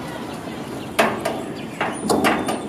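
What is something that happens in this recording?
A wooden gate bangs shut.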